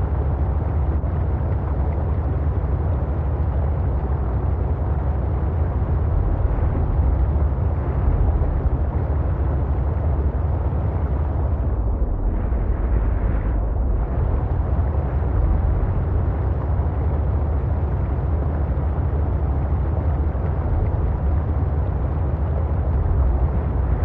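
A submarine's engine hums low and steady underwater.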